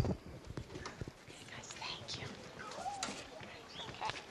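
A microphone thumps and knocks as it is handled.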